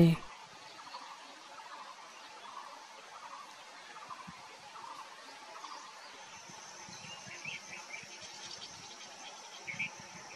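A bird gives low, repeated croaking calls close by.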